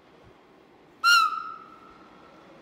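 A train sounds a short, loud horn blast.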